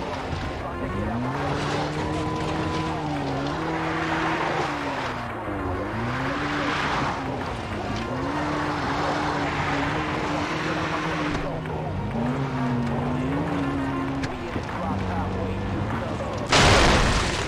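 A vehicle engine hums and changes pitch as it drives over rough ground.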